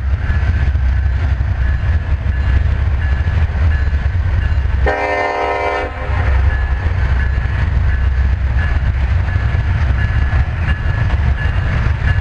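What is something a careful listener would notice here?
A freight train rumbles and clatters steadily past on the tracks.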